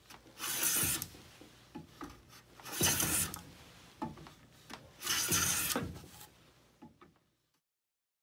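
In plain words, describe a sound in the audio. A hand plane shaves wood in long, rasping strokes.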